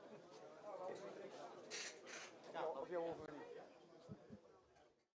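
Several men talk nearby in a lively indoor crowd.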